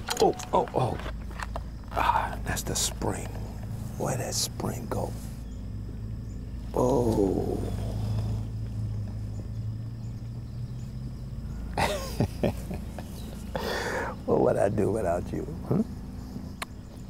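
A middle-aged man speaks quietly nearby.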